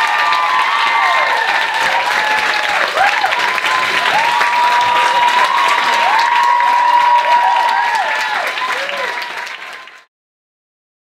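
An audience claps and cheers loudly in a room.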